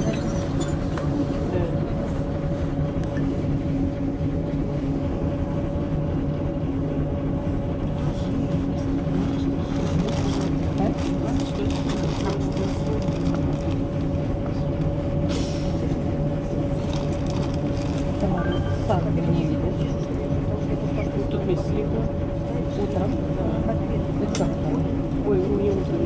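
A vehicle's engine hums steadily from inside as it rolls slowly along.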